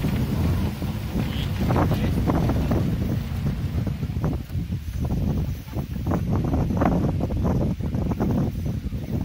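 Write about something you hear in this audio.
Strong wind rumbles and buffets throughout.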